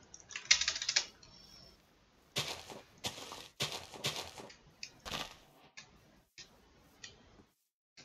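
Game footsteps patter on grass.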